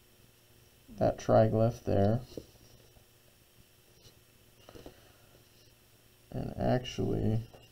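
A plastic set square slides and taps on paper.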